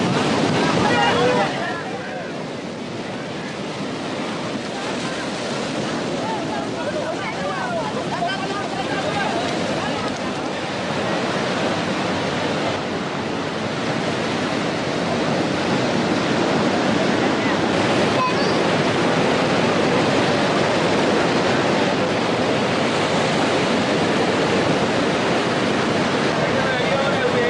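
Waves crash and wash onto the shore.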